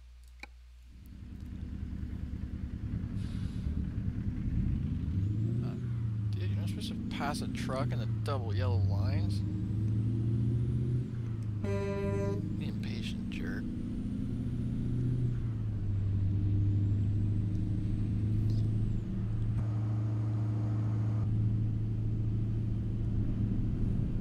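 A truck's diesel engine rumbles and revs as it drives along a road.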